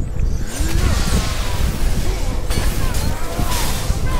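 Sparks crackle and burst in a fiery blast.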